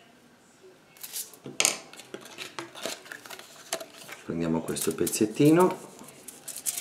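Plastic bubble wrap crinkles as hands press it onto paper.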